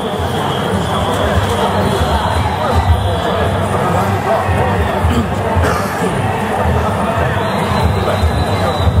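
A large group of men chant loudly in unison as they march.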